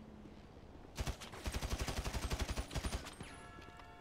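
A rapid burst of automatic gunfire rattles.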